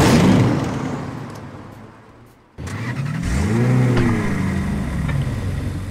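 A vehicle engine roars and revs.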